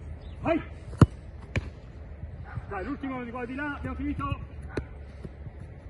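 A football is kicked with a hard thud.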